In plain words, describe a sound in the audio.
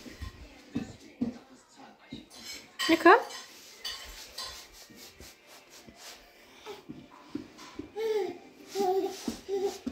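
A baby's hands pat on a wooden floor while crawling.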